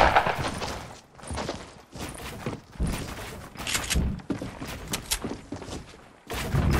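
Building pieces snap into place with quick, repeated clunks.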